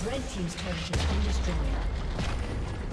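A game tower collapses with a deep rumbling boom.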